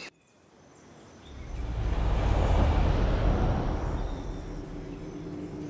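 A whooshing sound swells and then fades.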